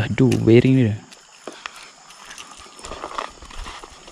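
A fishing line whirs out as a rod is cast.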